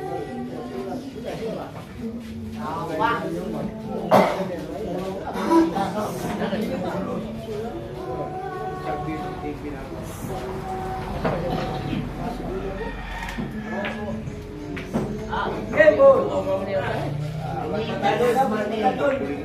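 A cue strikes a billiard ball with a sharp clack.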